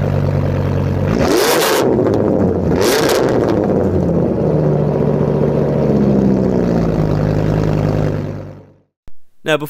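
A large engine idles with a deep, throbbing exhaust rumble.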